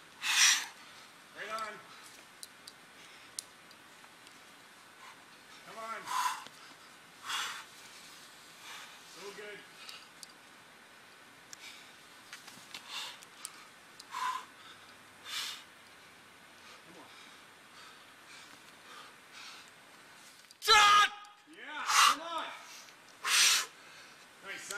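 A man exhales sharply in short bursts.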